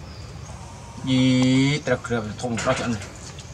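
A man speaks briefly close by.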